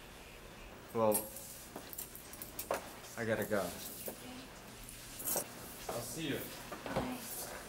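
A young woman speaks softly and close by, in short phrases.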